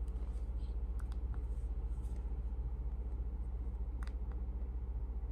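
Fingers tap and handle a tablet with soft knocks.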